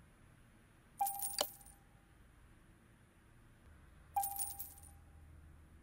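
A bright chime rings as an item is bought.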